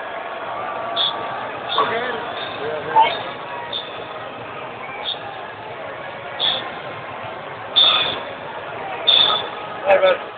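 Nearby fans shout and whoop loudly.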